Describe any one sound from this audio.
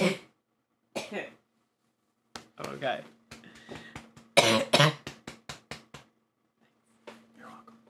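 A young man talks and laughs close to a microphone.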